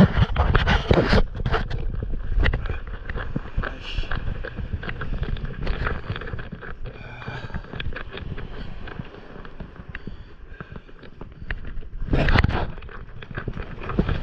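A sail flaps and rustles in the wind.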